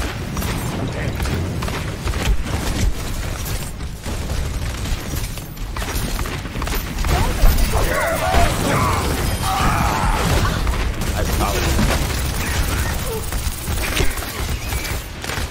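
Explosions and blasts boom in a game battle.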